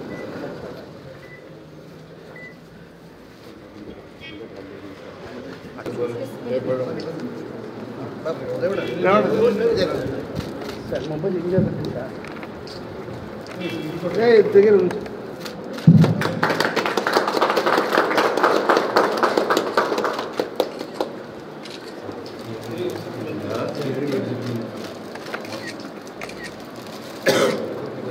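A crowd of men and women talk and murmur close by.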